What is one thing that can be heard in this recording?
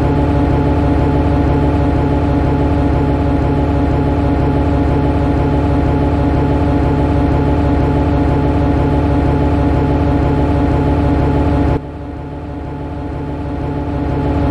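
An electric locomotive hums steadily as a train rolls along the rails.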